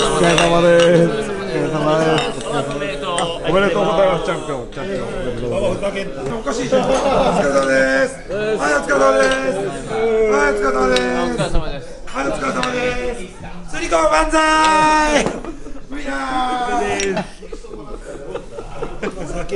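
Several men talk and laugh close by.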